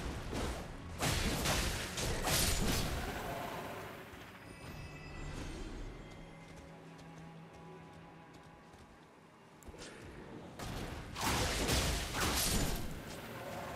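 Heavy weapons clash and strike in a fight.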